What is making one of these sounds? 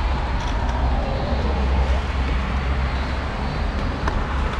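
A car drives past nearby.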